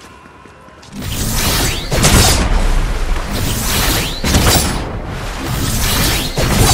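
A blade swings and slashes with bright swooshes.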